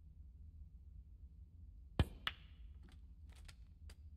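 A snooker cue strikes the cue ball with a sharp click.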